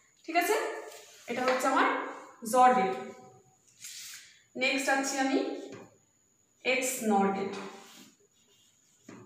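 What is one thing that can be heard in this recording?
A woman speaks clearly and explains, close by.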